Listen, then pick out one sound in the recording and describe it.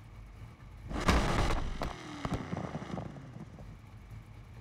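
A car engine revs loudly, then settles back to a low rumble.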